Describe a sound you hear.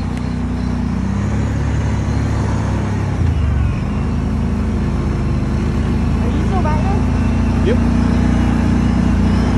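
An all-terrain vehicle engine rumbles steadily up close.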